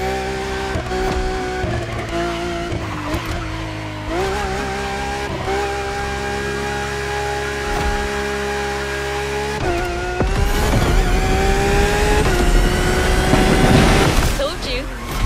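A race car engine roars loudly, rising in pitch and dropping sharply with each gear change.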